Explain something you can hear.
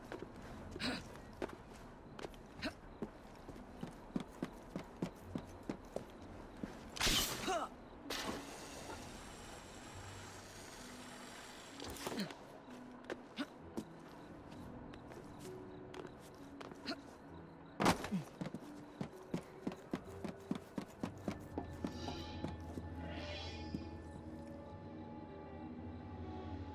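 Quick footsteps tap and scrape on a roof.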